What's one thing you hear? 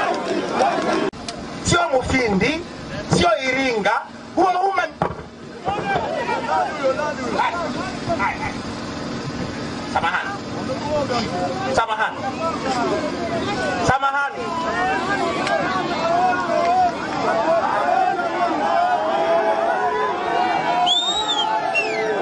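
A man speaks loudly into a microphone over a loudspeaker outdoors.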